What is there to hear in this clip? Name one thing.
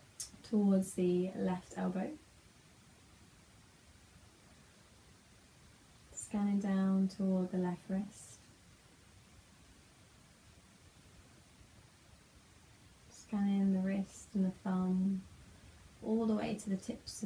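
A young woman speaks slowly and calmly, close by, in short phrases with long pauses.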